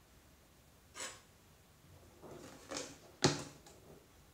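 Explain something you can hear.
Plastic bottles knock on a table as they are moved.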